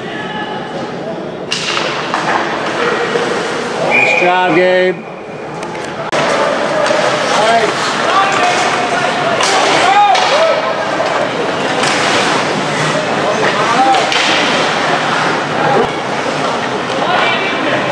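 Ice hockey skates scrape and carve across the ice in an echoing rink.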